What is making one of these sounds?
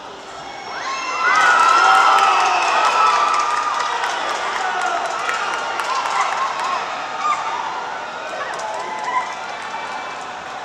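Young men shout and cheer on a football pitch in a large, open stadium.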